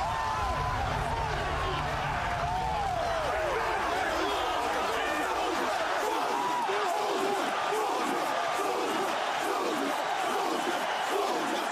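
Men shout excitedly close by.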